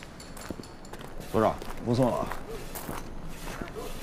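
A man's footsteps walk across a hard floor.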